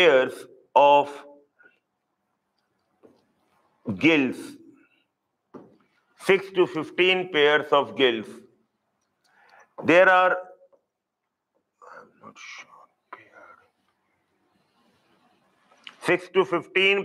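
A man lectures with animation into a close microphone, in short bursts with pauses.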